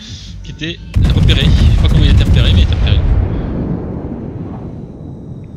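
Heavy ship guns fire with a loud, deep boom that rumbles away.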